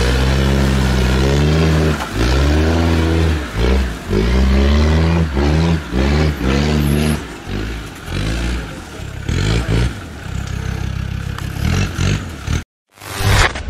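An engine revs hard and roars in bursts.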